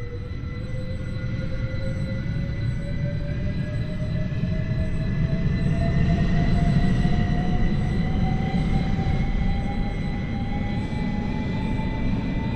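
A train rumbles along the track.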